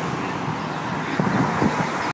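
Cars drive by on a nearby road.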